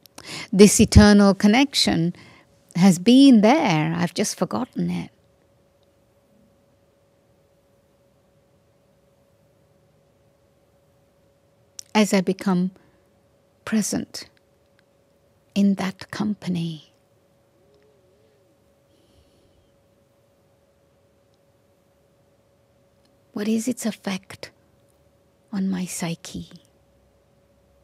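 An elderly woman speaks slowly and calmly into a microphone, with long pauses.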